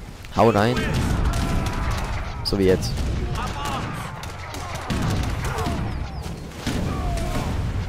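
Muskets fire in a crackling volley.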